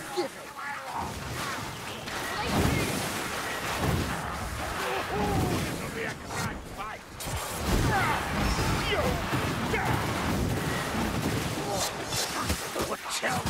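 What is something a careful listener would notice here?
Blades slash and hit flesh with wet thuds.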